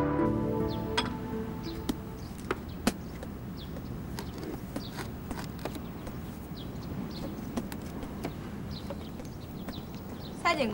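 Light knocks and taps sound as a metal sign is fixed to a wall.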